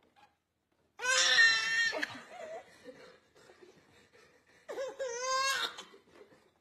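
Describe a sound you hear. A baby squeals and laughs loudly close by.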